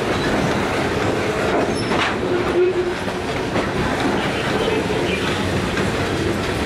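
A freight train rumbles past close by, its wheels clattering and squealing on the rails.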